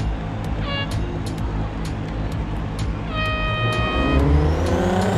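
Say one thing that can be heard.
Start beeps sound, a short one and then a long one.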